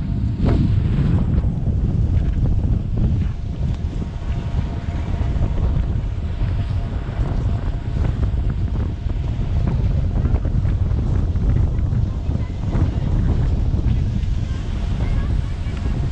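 Skis scrape and hiss over packed snow.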